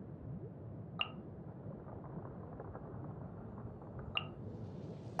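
A short interface chime clicks twice.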